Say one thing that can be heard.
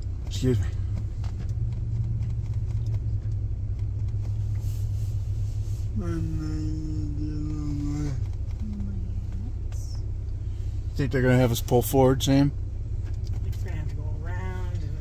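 A car engine hums low and steadily.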